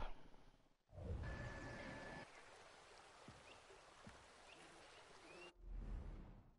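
Water laps softly at a shore.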